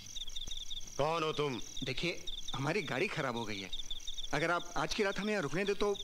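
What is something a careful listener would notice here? A middle-aged man speaks forcefully, close by.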